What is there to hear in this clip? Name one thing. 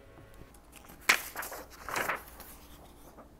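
Paper rustles.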